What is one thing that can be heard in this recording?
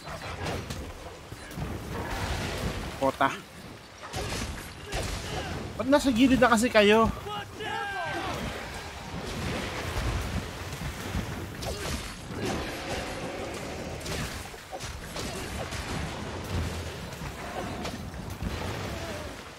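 Heavy weapon blows strike and clang repeatedly.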